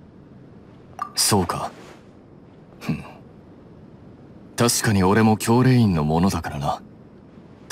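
A young man speaks calmly and evenly, close up.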